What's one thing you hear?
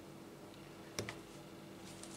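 A plastic stitch marker clicks shut.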